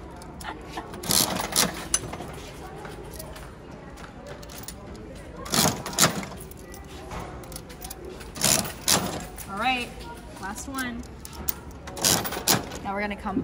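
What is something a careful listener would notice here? A gumball machine's crank turns with loud ratcheting clicks.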